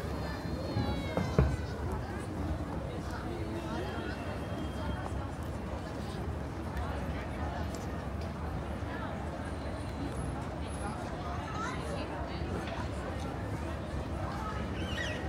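People's voices murmur faintly in the distance outdoors.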